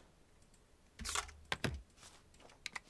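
A mechanical stamp tray slides out with a clunk.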